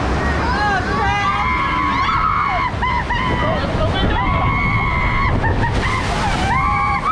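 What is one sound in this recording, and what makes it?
A young woman shrieks loudly nearby.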